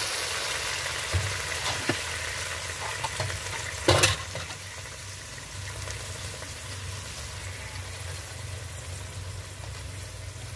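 A pot of meat simmers with a soft, steady hiss.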